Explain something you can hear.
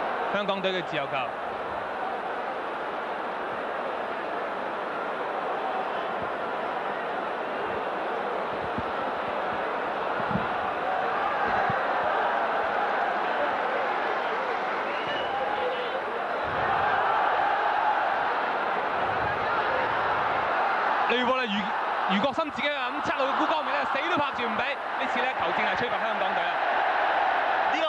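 A large crowd murmurs and roars in an open stadium.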